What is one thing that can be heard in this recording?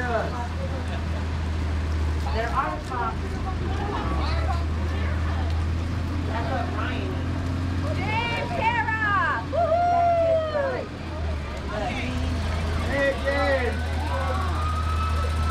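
Rain falls steadily on wet pavement.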